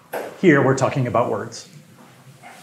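A man speaks clearly in a lecture voice.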